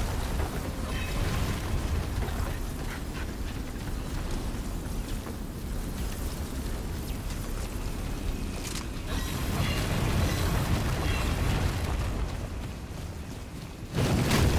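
Footsteps tread on stone floors.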